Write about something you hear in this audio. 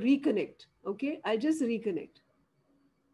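An elderly woman speaks with animation over an online call.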